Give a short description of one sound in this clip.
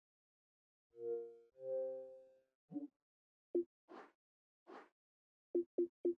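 Short electronic menu tones blip now and then.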